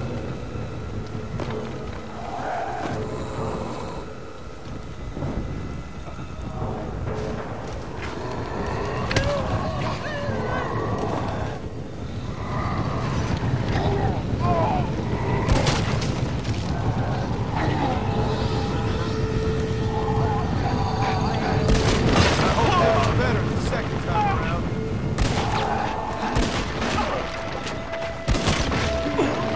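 Gunshots ring out now and then.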